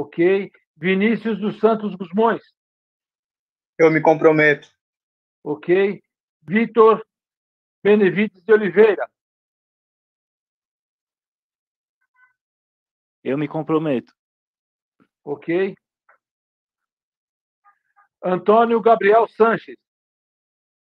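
A man speaks over an online call in short phrases with pauses.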